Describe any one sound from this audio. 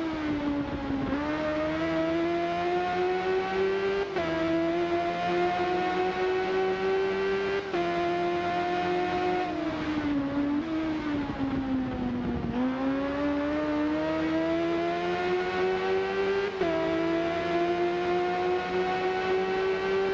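A motorcycle engine roars at high revs, rising through the gears and dropping as it slows for corners.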